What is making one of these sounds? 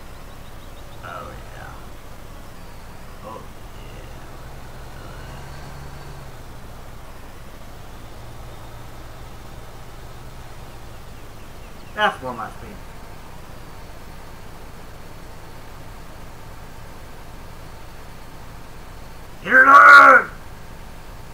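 A man speaks through a headset microphone now and then, in short bursts.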